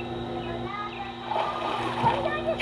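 Water splashes loudly close by.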